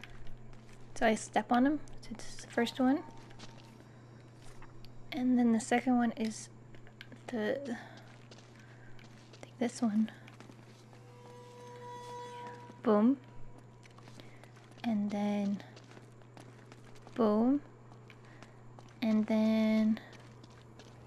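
A young woman speaks in short bursts, close to a microphone.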